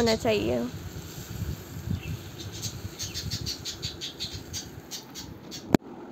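Oil pours and trickles onto food.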